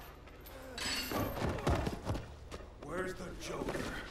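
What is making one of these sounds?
A body thuds heavily onto the floor.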